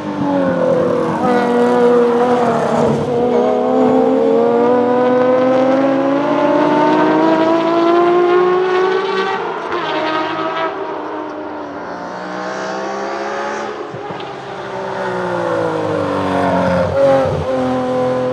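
A car's exhaust pops and bangs loudly.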